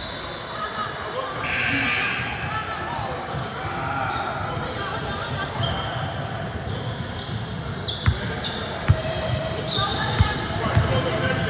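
Many young voices chatter and call out, echoing in a large hall.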